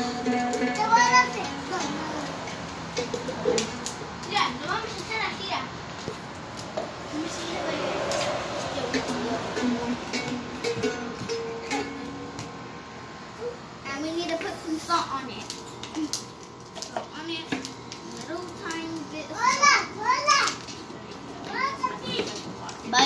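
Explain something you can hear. Young girls chatter and squeal excitedly nearby.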